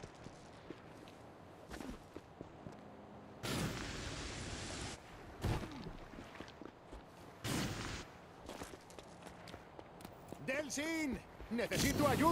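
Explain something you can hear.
Footsteps land on hard ground after jumps.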